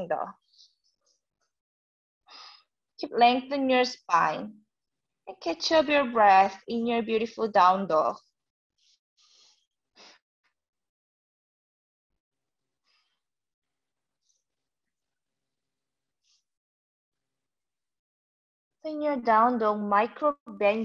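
A young woman speaks calmly, giving instructions close to a microphone.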